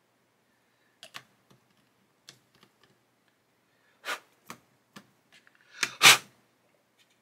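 Small plastic parts click and tap against each other.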